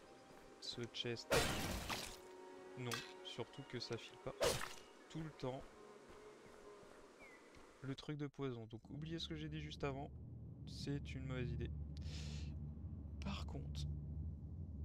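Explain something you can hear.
A man talks casually into a close microphone.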